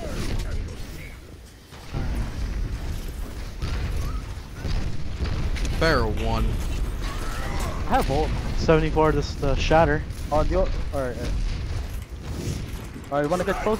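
A heavy hammer swings and strikes with dull impacts.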